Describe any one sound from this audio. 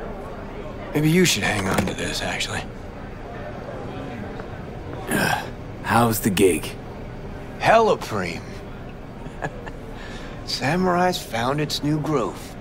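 A man speaks calmly and closely, in short phrases.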